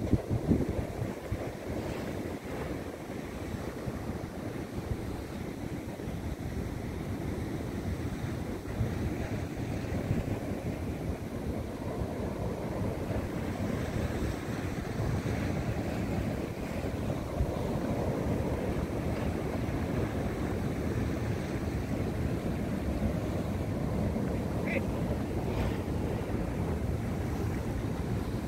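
Waves churn and wash against rocks, outdoors in wind.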